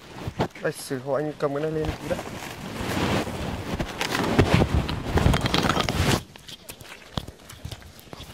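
Plastic bags rustle in a young man's hands.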